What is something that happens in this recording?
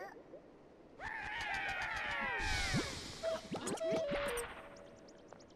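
A small creature squeals in high, falling cries.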